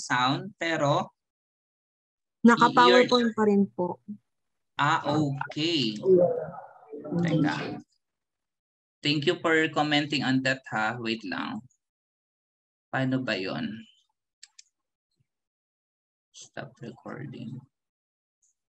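A young man talks calmly through an online call, in short bursts with pauses.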